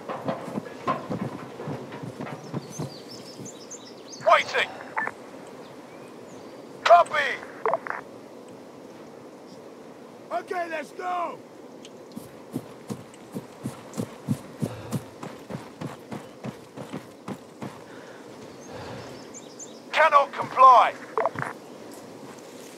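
Footsteps crunch through grass and gravel.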